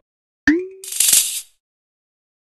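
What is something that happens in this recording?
A bright shimmering jingle plays briefly.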